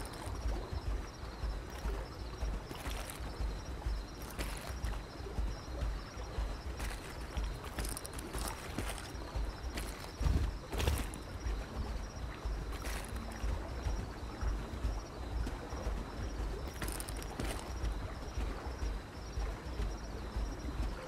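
A large creature's heavy footsteps thud on rocky ground.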